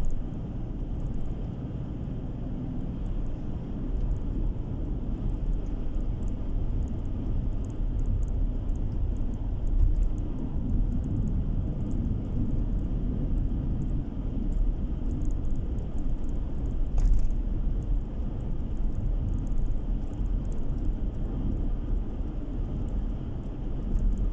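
Tyres roll on asphalt with a low rumble.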